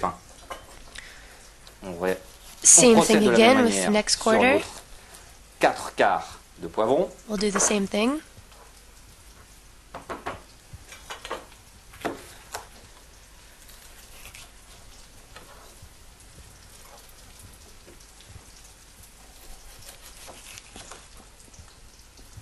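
A knife taps and cuts on a wooden board.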